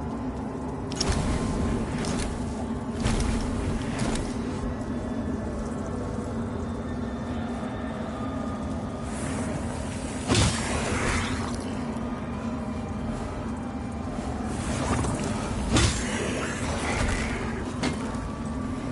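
Sword blows clang and slash in quick bursts.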